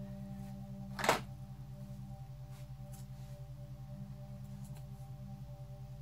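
Paper rustles as it is handled close by.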